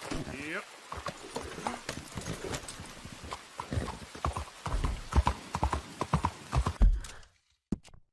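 Horse hooves clop at a steady pace on a street.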